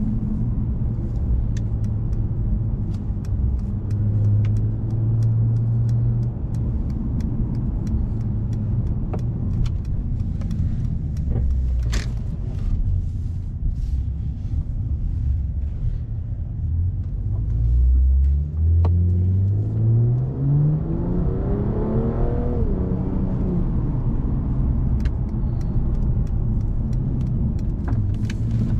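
A luxury sports sedan's engine drones low, heard from inside the cabin.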